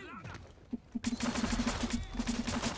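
Silenced gunshots fire in a quick burst.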